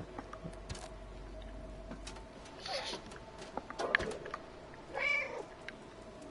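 A cat's paws tap softly as it walks.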